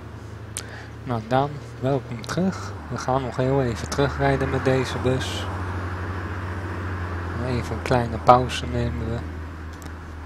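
A young man talks casually into a nearby microphone.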